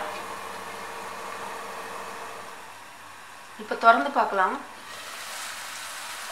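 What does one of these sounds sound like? Meat sizzles softly in a hot pan.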